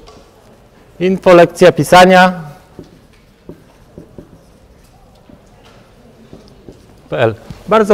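A man speaks loudly in a room with a slight echo.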